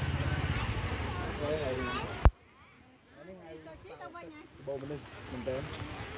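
People in a crowd chat outdoors.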